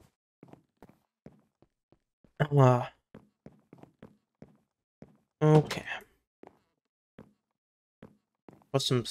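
Footsteps tap lightly on a wooden floor.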